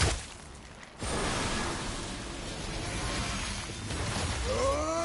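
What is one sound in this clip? A rushing burst roars loudly.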